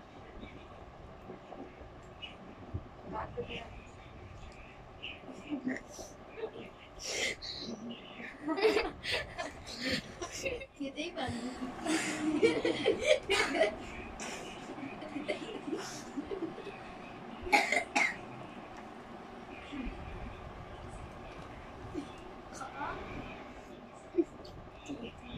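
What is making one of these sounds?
A young girl talks and giggles close by.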